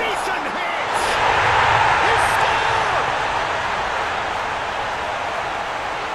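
A stadium crowd erupts into a loud cheer.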